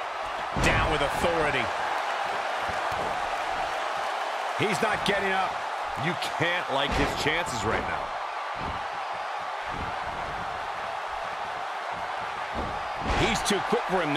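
Bodies slam onto a wrestling mat with heavy thuds.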